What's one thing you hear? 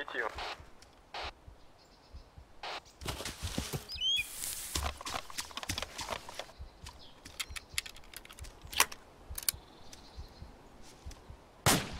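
Gunshots crack in sharp bursts outdoors.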